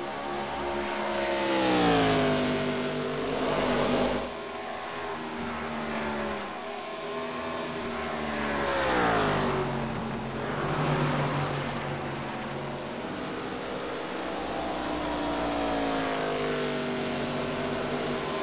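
A race car engine roars at high speed, its pitch dropping as it passes by.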